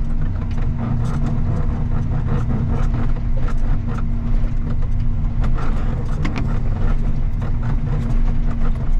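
A snow plow blade scrapes and pushes through snow.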